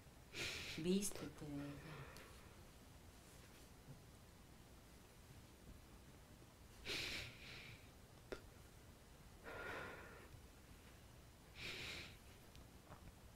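A man breathes heavily and snores in his sleep, close by.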